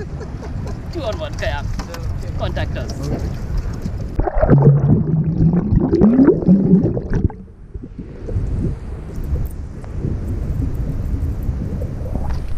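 Paddles splash in water.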